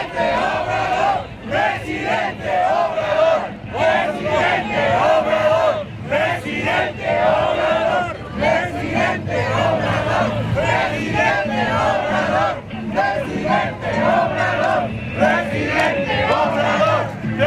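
A man shouts loudly nearby outdoors.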